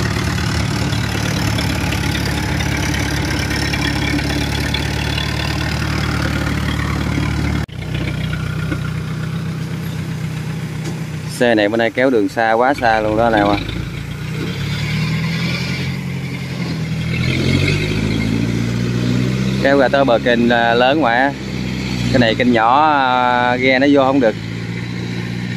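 An engine drones loudly close by, then chugs on as it moves off.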